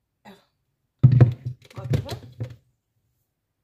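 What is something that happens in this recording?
A plastic lid knocks and rattles as it is lifted off a blender jug.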